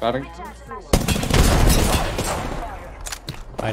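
Gunfire and an explosion boom in a video game.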